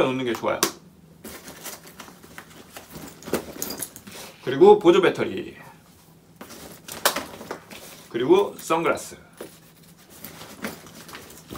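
Items rustle and knock as they are packed into a backpack.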